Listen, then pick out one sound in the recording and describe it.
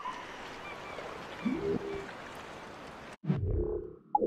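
Waves wash softly against a shore.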